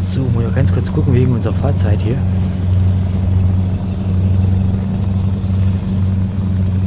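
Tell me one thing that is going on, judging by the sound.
A truck engine drones steadily at a low pitch.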